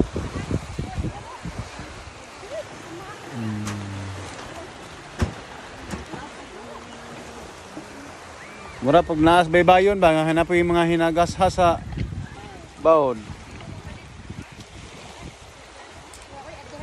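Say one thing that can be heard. Small waves lap gently against a pebbly shore.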